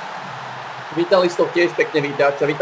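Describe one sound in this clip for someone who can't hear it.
A man speaks loudly close to a microphone.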